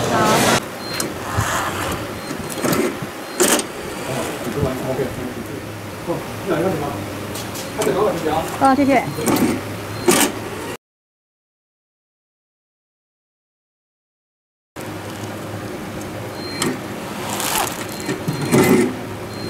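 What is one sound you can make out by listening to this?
A strapping machine pulls a band tight and seals it with a sharp click.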